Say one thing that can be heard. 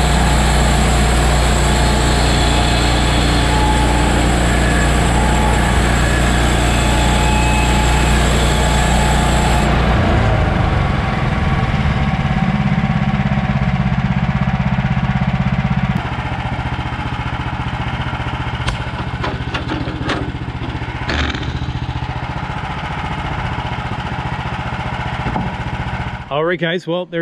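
A bandsaw mill's gasoline engine runs.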